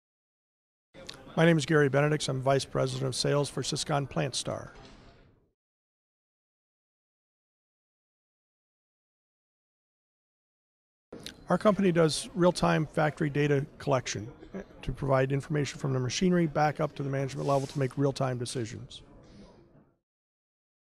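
A middle-aged man speaks calmly into a handheld microphone, close by.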